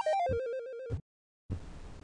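Electronic game beeps play in a quick falling run.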